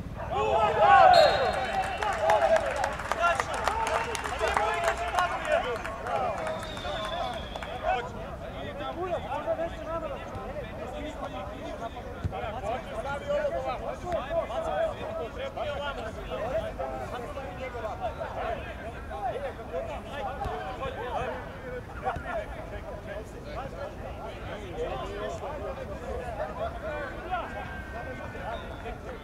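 Men shout and call out to each other across an open field.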